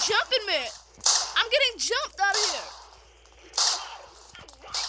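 A rifle fires sharp shots that echo briefly.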